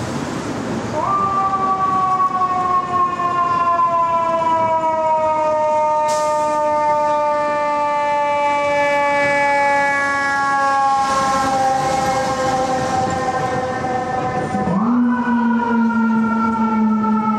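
A fire truck siren wails loudly and slowly falls in pitch.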